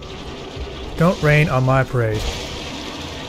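A huge creature lets out a deep, rising roar.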